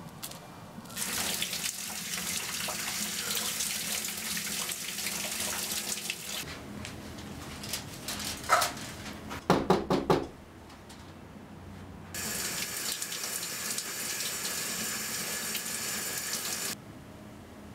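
Water from a shower hisses down steadily.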